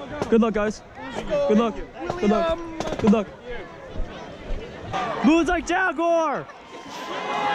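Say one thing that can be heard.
Young men shout and cheer loudly close by.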